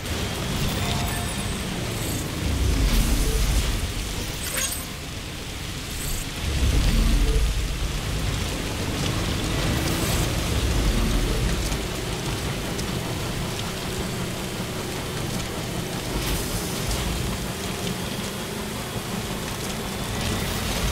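Tyres crunch over rocks and gravel.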